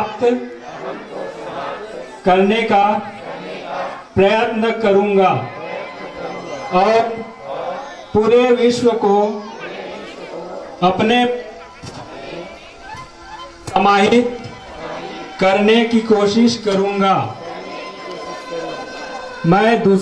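A man loudly calls out exercise commands through a loudspeaker outdoors, in short bursts.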